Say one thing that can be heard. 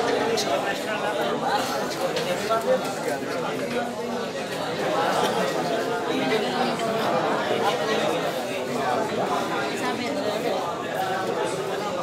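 A crowd of men chatters nearby.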